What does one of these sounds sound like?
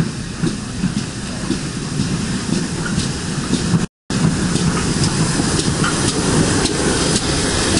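A steam locomotive chuffs and rumbles as it pulls in close by.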